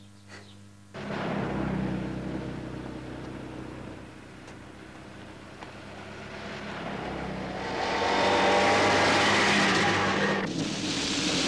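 A car drives past on a street.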